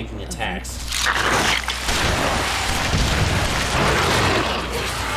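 A huge creature lets out a loud, rough roar.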